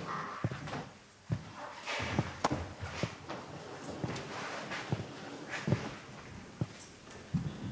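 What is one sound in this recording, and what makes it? Footsteps tread on a wooden floor.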